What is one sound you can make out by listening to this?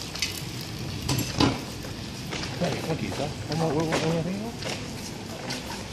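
A bicycle rolls past quietly on paving.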